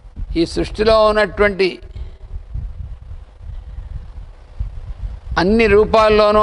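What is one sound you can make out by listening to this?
An elderly man speaks slowly and calmly, close by.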